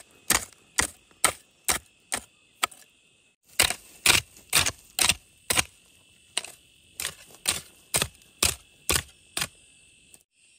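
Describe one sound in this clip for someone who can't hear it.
A hoe chops rhythmically into soft soil.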